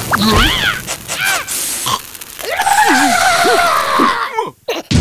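A cartoon creature screams in alarm.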